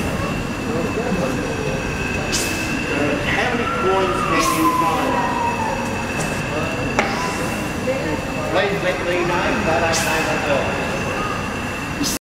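A steady high whine rings from a steam engine.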